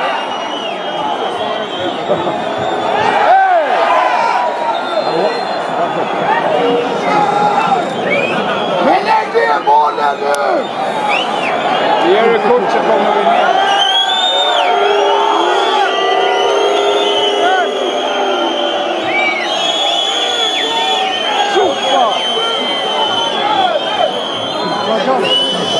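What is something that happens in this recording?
A large stadium crowd sings and chants loudly throughout.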